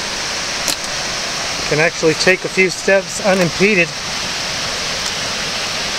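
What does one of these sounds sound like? Water rushes steadily over a small waterfall nearby.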